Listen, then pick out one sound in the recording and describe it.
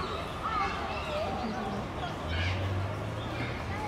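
A crowd of adults murmurs and chatters at a distance outdoors.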